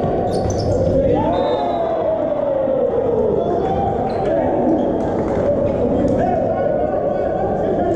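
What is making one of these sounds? A volleyball is struck by hands in an echoing indoor hall.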